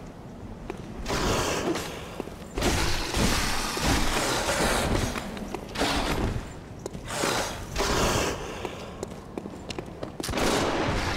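Blades slash and strike a creature in a fierce fight.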